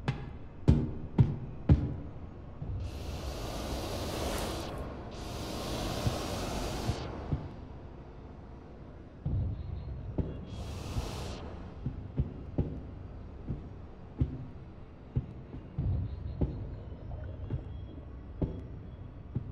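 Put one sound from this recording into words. Footsteps thud on a hard floor, echoing in a large room.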